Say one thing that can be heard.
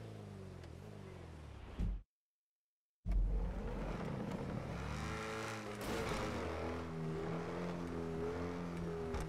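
A car engine roars loudly, its pitch rising and falling as it revs.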